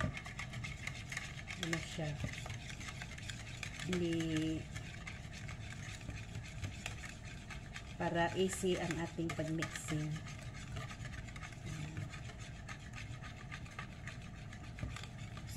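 Flour pours softly into a bowl.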